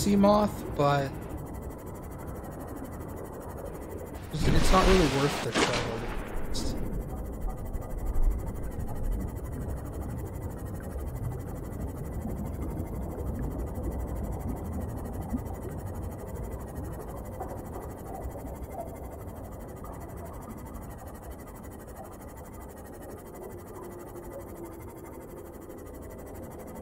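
A low underwater rumble hums steadily.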